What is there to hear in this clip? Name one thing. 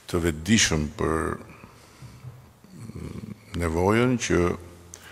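An older man speaks slowly and deliberately into a microphone.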